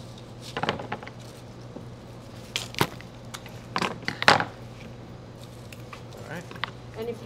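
Flower stems rustle and crinkle as they are handled.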